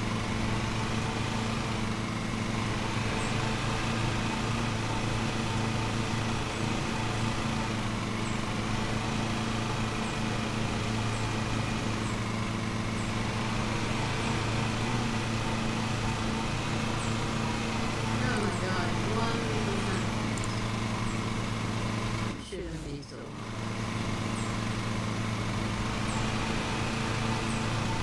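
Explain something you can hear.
A riding lawn mower engine hums steadily.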